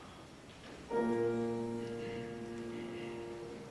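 A large choir begins singing together.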